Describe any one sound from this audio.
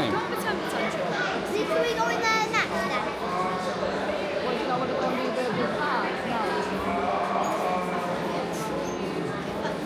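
Racing game engines and electronic sound effects play from several loudspeakers.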